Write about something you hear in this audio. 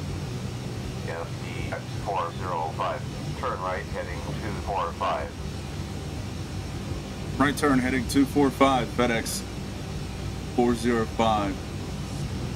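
A man speaks calmly into a headset microphone.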